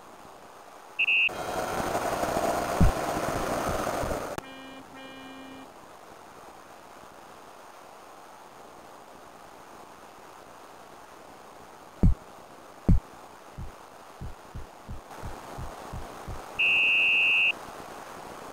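A referee's whistle blows with short shrill blasts.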